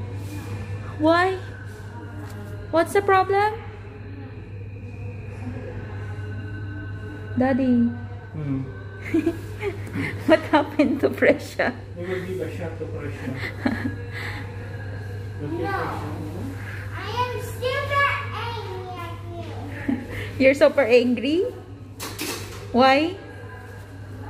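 A young girl cries and sobs loudly nearby.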